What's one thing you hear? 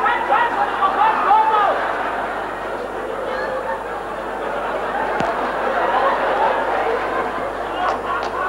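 An audience murmurs in a large hall.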